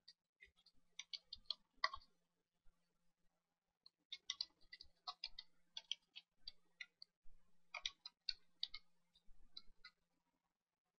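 Keyboard keys click quietly and quickly during typing.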